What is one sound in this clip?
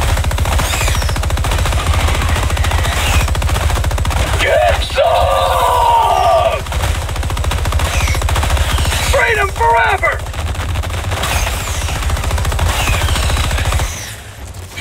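A rapid-firing gun shoots in fast, continuous bursts.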